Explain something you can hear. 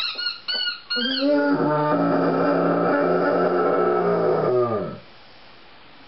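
A dog lets out a long, loud howl that slides down at the end.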